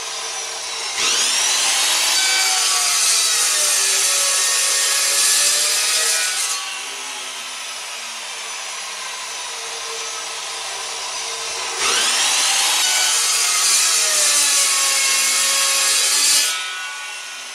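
An abrasive chop saw whines loudly as it cuts through metal rod.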